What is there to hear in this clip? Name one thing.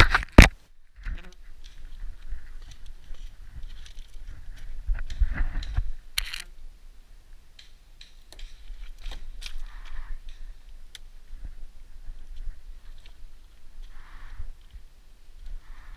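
Footsteps crunch over dry grass and gravel.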